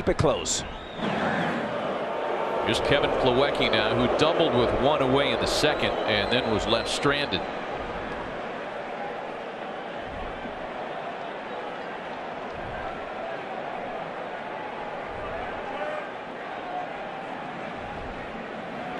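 A large stadium crowd cheers loudly, then settles into a steady murmur.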